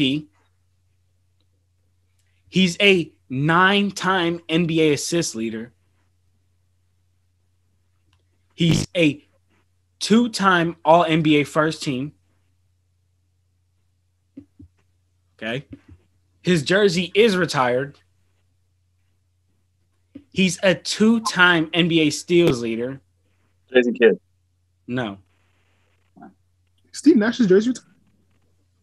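A young man speaks with animation over an online call.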